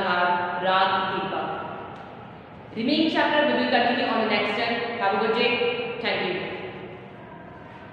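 A young woman speaks clearly and with animation, close by in an echoing room.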